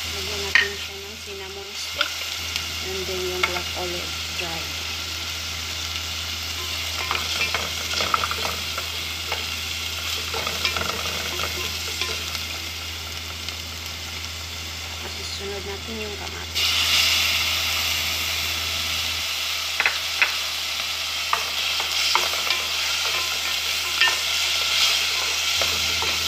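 Oil sizzles and crackles in a pan, suddenly growing louder partway through.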